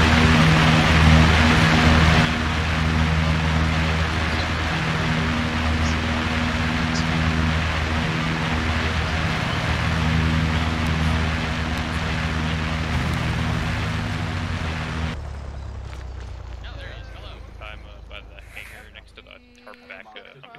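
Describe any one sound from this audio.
A large aircraft engine drones loudly nearby, then fades away.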